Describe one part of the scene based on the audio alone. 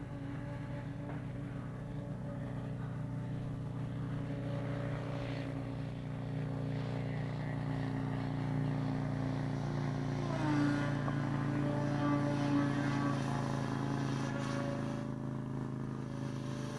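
A small aircraft engine drones steadily overhead.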